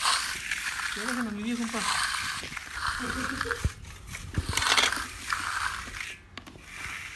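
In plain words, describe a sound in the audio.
A steel trowel scrapes and smooths wet concrete.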